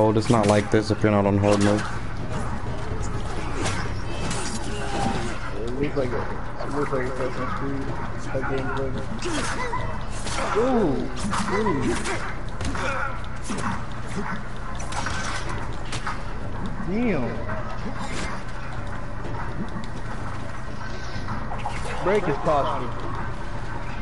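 Swords clash and ring in quick fights.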